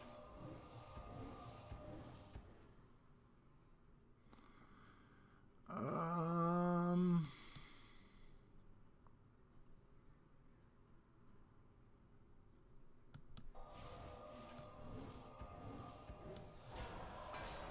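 Magical spell effects whoosh and chime in a game.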